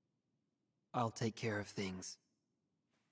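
A young man speaks calmly and hesitantly.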